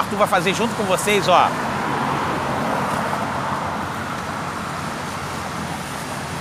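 Cars pass by on a wet road.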